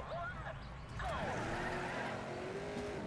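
A racing car engine revs up and roars.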